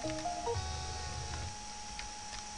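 Short electronic game beeps play in quick succession.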